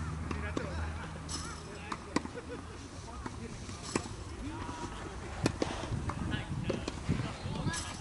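Tennis balls bounce on the court.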